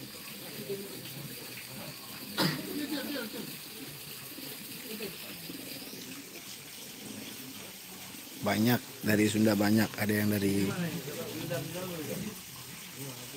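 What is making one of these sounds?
A crowd of men murmurs quietly outdoors.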